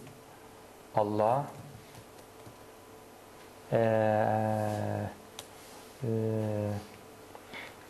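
A man recites in a slow, drawn-out chant close to a microphone, in short phrases with pauses.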